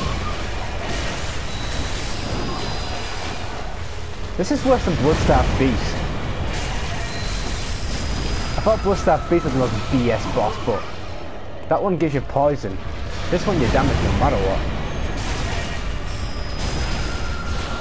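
Weapons slash and strike with heavy impacts.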